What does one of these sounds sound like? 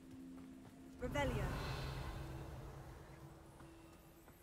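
A magic spell bursts with a bright, sparkling shimmer that slowly fades.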